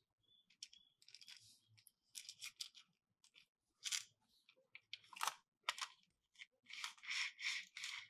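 Hands rub and slide over plastic.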